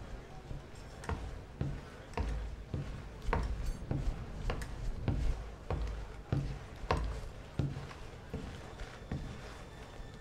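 Heavy boots thud slowly on a wooden floor.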